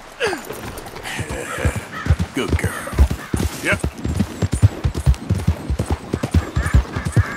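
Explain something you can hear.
Horse hooves thud rapidly on a dirt trail.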